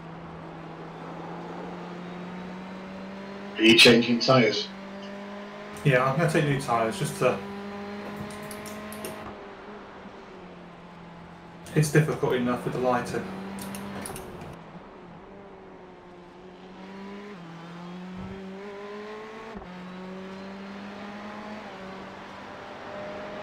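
A racing car engine hums steadily and rises and falls in pitch as the car drives.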